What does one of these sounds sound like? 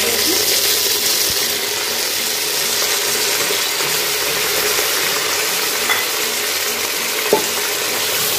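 Meat sizzles and hisses in a hot pot.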